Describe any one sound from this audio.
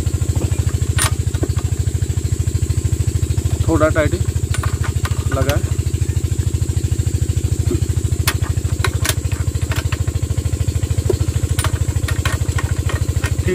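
A socket wrench clicks against metal nuts.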